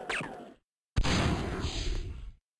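A bright electronic whoosh sounds and fades.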